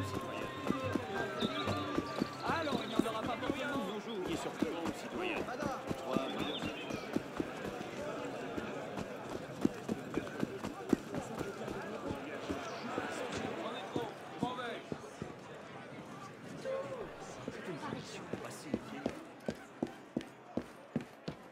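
Quick footsteps run over stone and then up stairs.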